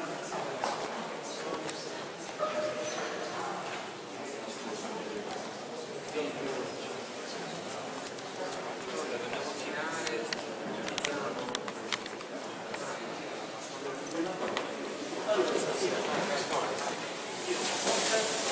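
Men and women murmur and talk quietly in an echoing hall.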